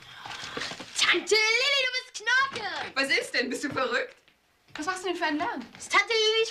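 A middle-aged woman speaks cheerfully nearby.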